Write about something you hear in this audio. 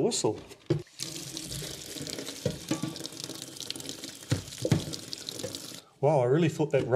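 Water runs from a tap and splashes into a metal sink.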